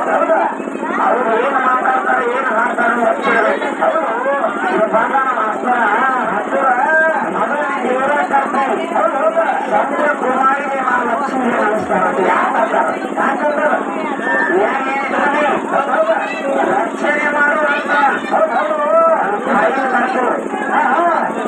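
A man sings loudly through a microphone with an amplified, echoing sound.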